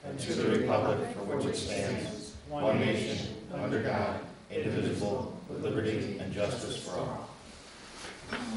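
A group of people recite together in unison.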